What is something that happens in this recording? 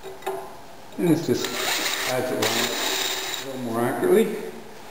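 A cordless drill whirs as it bores through metal.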